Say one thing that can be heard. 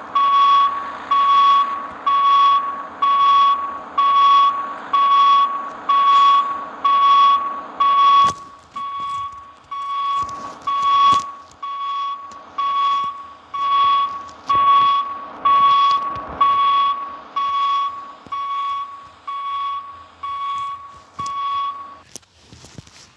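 A truck's reversing alarm beeps.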